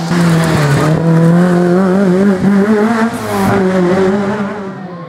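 A car engine revs hard close by, then fades as the car pulls away.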